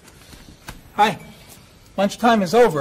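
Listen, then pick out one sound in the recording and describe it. A man greets others in a cheerful voice.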